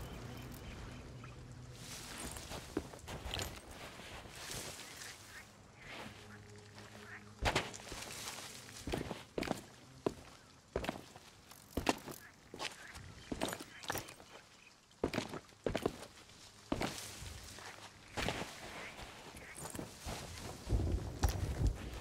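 Footsteps crunch over sand and grass at a walking pace.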